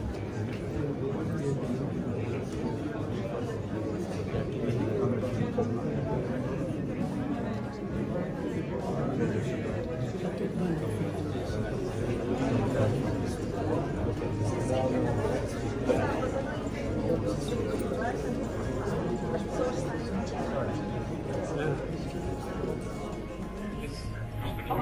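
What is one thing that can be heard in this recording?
A crowd of men and women chatter close by in an echoing hall.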